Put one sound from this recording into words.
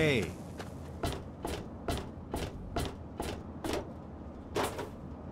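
Footsteps clang steadily on a metal walkway.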